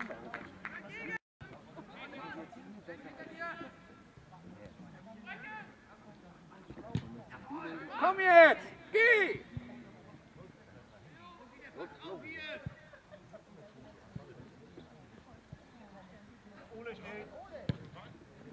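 Young male players shout to each other across an open field.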